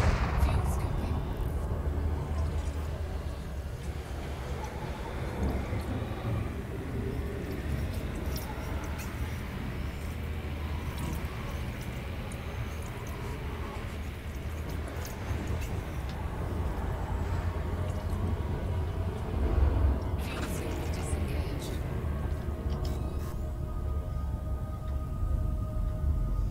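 A spaceship's engines rumble low and steadily.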